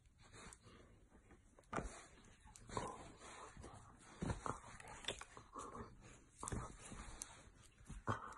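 A dog's jaws snap and mouth at a hand.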